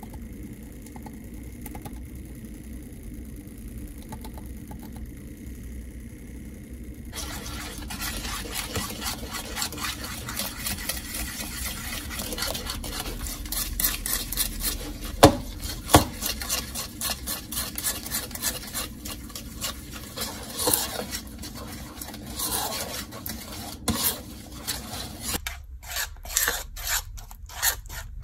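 A small electric whisk whirs steadily in liquid.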